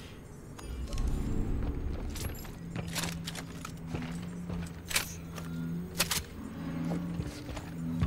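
Heavy boots thud on a metal floor.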